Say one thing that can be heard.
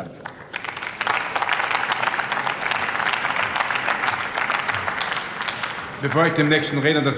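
An audience in a large hall applauds.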